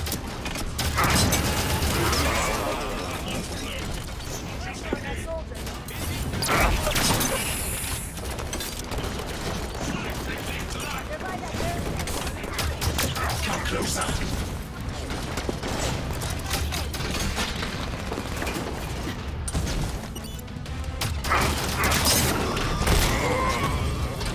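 Sci-fi gunfire bursts rapidly.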